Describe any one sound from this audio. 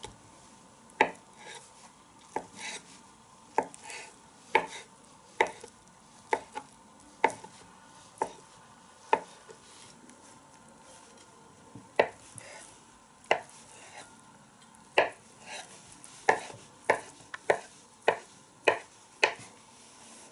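A knife taps sharply on a cutting board as an egg is chopped.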